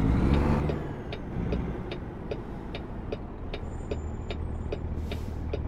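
A truck engine rumbles low and steady as it turns slowly.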